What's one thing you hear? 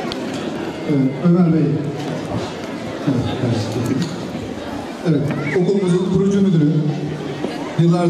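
A man speaks loudly and with animation close by.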